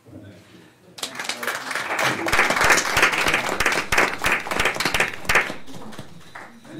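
People applaud.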